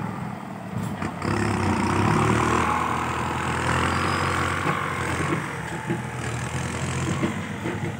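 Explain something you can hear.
A heavy truck's diesel engine rumbles and revs nearby, outdoors.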